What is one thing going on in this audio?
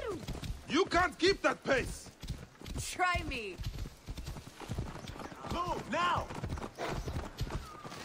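A horse gallops with steady hoofbeats on a dirt road.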